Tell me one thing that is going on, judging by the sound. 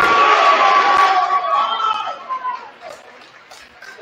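A crowd in the stands cheers and chatters.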